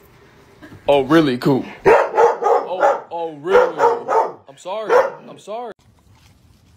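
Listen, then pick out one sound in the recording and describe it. A dog howls and whines loudly close by.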